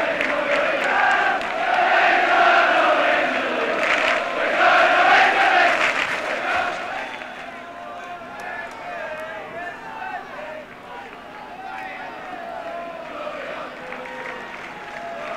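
A large stadium crowd roars loudly and then settles into a murmur.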